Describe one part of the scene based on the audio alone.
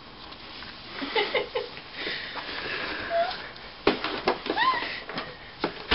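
A baby babbles and squeals up close.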